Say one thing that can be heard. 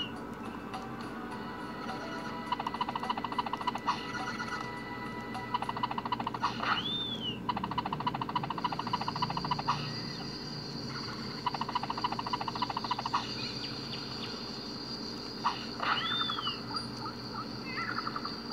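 Cheerful video game music plays from a small handheld speaker.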